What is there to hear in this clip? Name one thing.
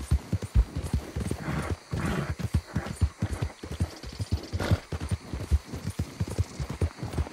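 Horse hooves thud steadily on soft ground at a gallop.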